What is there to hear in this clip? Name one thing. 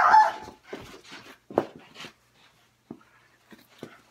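A young boy speaks close up, loudly and with animation.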